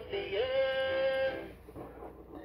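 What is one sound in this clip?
A toy plays a short electronic tune.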